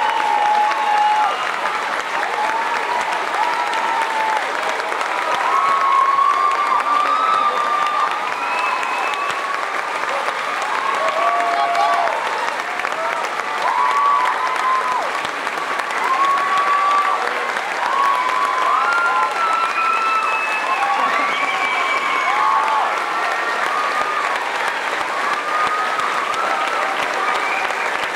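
A crowd cheers and whoops excitedly.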